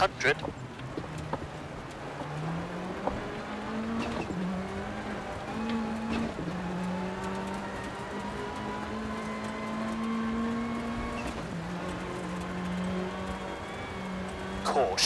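A rally car engine revs hard, rising and dropping through the gears.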